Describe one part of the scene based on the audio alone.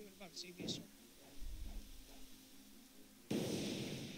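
A fiery blast roars and rumbles.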